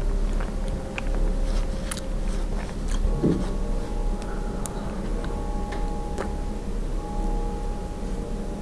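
A person chews soft marshmallow close to a microphone with wet, squishy sounds.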